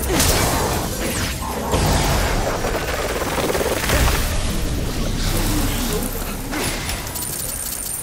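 Crackling energy blasts zap and boom loudly.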